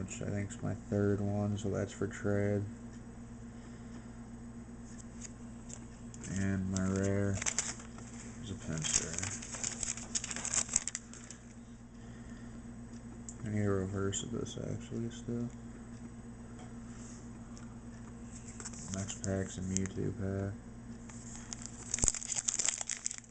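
Plastic card sleeves rustle and crinkle between fingers.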